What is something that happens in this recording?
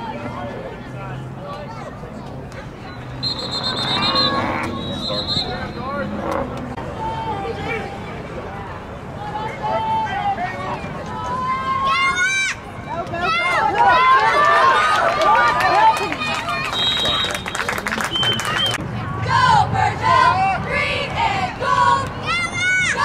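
Players shout on an outdoor field.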